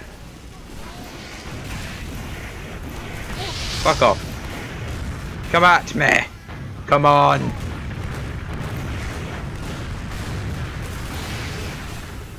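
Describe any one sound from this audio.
Gunfire rattles from a video game.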